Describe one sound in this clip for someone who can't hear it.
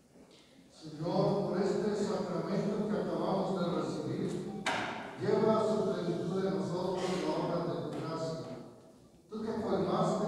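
A man sings slowly through a loudspeaker in a large echoing hall.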